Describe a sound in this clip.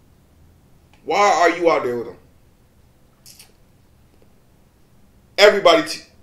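A man speaks close to a microphone in short, emphatic bursts.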